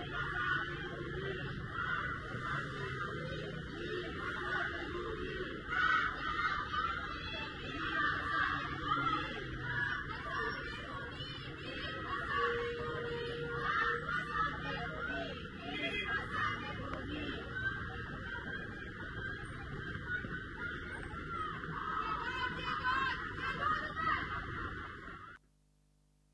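A crowd chants outdoors in the distance.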